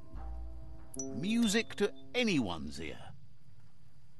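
A bright chiming jingle plays with sweeping tones.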